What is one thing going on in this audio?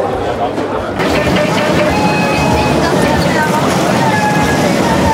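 A fairground ride rumbles and whirs.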